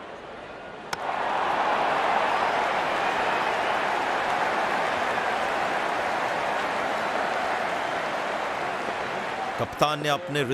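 A stadium crowd roars loudly.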